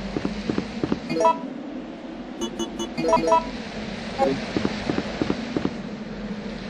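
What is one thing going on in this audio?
Footsteps thud on hollow wooden boards.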